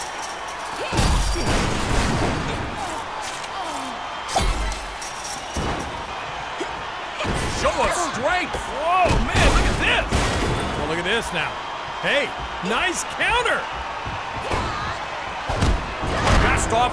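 Heavy thuds ring out as bodies slam onto a wrestling ring mat.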